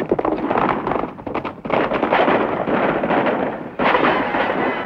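Horses gallop over dirt.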